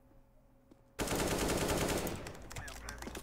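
Rapid gunfire rings out.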